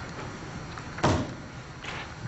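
A stool knocks against the floor.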